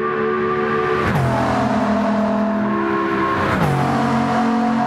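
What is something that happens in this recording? A hypercar engine shifts up a gear, its pitch dropping sharply.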